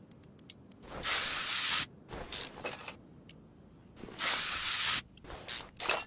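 A spray can hisses in short bursts.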